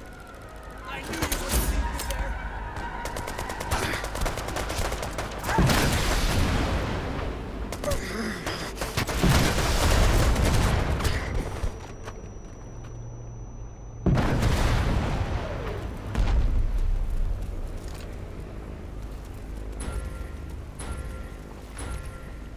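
Gunfire and explosions boom and crackle in loud bursts.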